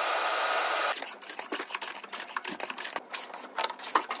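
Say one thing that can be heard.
A hand plane shaves a wooden frame.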